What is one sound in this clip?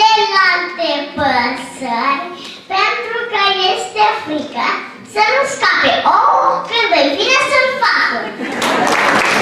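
Two young boys recite loudly and clearly, one after the other.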